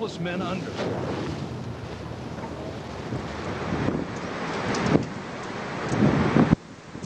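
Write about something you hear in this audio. Rough waves crash and surge.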